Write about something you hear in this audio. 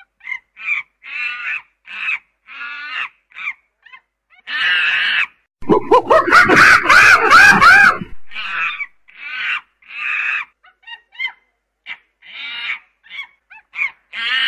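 A chimpanzee pant-hoots in rising bursts.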